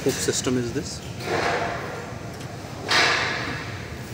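A metal door slides and rattles in its frame.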